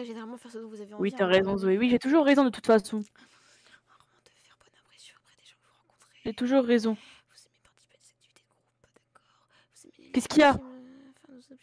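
A young person speaks with animation close to a microphone.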